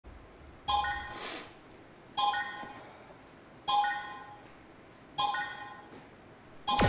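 An arcade dance machine beeps four times in an even countdown.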